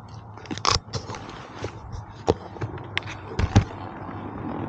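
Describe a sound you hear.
A helmet knocks and clicks against a motorcycle.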